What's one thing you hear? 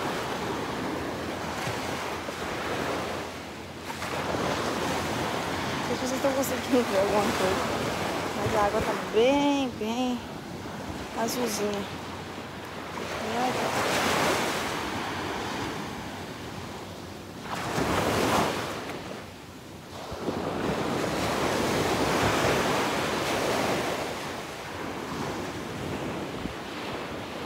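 Wind blows against the microphone.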